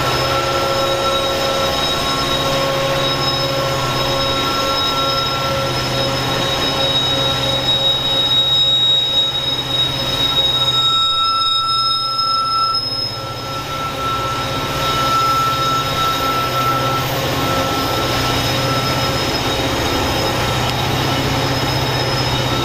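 Diesel locomotives rumble and roar as they pull a train past.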